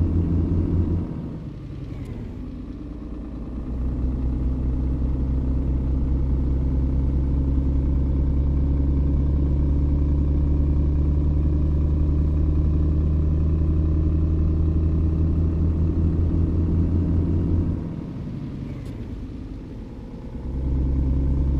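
A diesel truck engine drops off briefly during gear changes.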